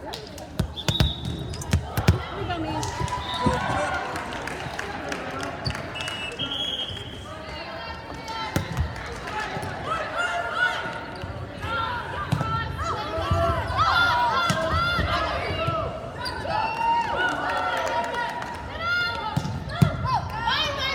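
A volleyball is struck with sharp slaps.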